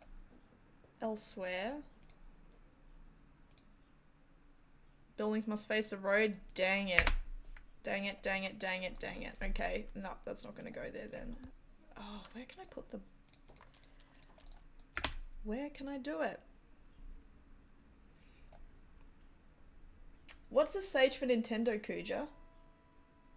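A young woman talks casually and with animation into a close microphone, in bursts with pauses.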